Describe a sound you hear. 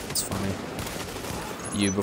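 A fire crackles and roars after an explosion.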